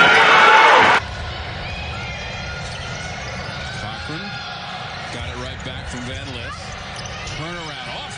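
Sneakers squeak on a hardwood court in a large echoing arena.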